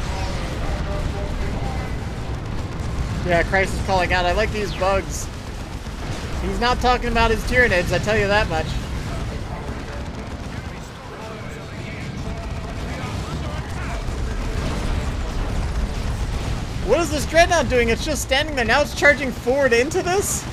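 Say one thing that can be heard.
Explosions and gunfire rumble through a battle.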